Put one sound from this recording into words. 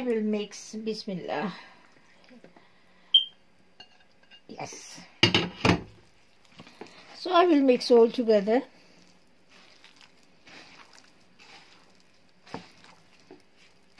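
Hands squish and knead soft mash in a bowl.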